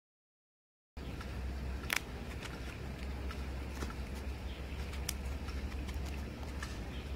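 A dried vegetable slice crackles as fingers break it.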